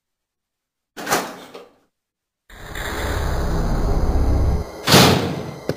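A heavy door creaks slowly open.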